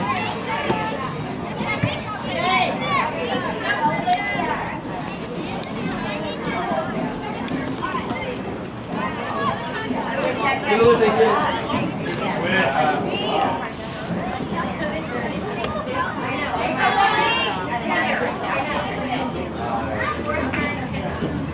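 Adult spectators chatter nearby outdoors.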